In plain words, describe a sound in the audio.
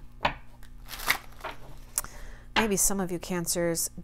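Playing cards tap and slide against each other.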